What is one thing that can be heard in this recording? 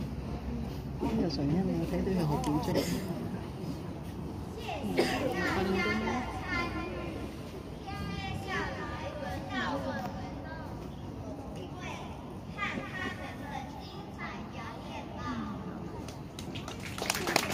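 A crowd of children and adults chatters nearby outdoors.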